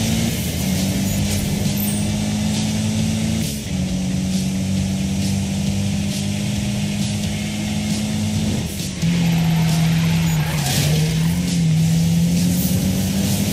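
A car engine roars steadily at high revs, dropping briefly as gears shift.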